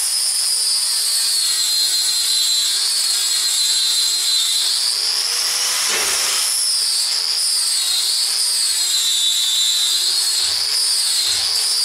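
An angle grinder whines steadily as it grinds metal, its pitch wavering.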